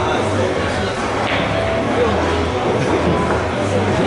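Pool balls clack together as a shot is played.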